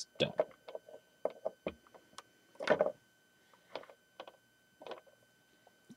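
Small plastic toy figures click as a hand lifts them off their base.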